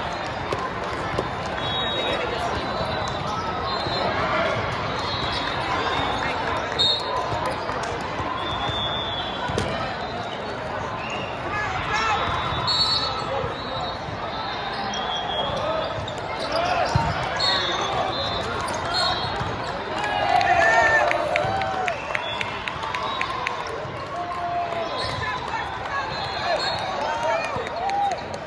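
A large crowd chatters throughout in a big echoing hall.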